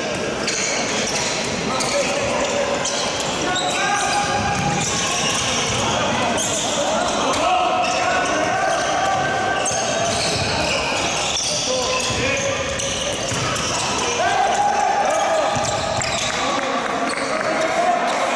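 A crowd of spectators chants and shouts in an echoing indoor hall.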